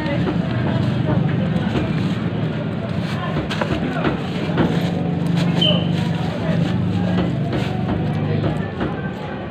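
A woman talks nearby in a busy, noisy crowd.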